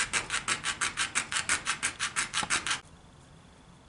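A saw cuts with quick, even strokes.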